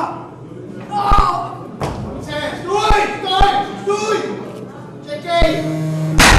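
Men shout encouragement nearby.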